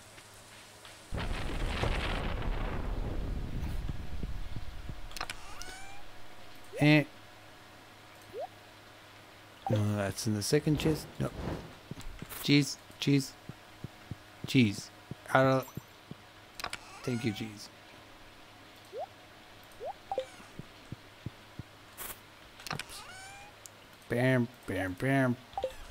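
A game plays short chimes and blips.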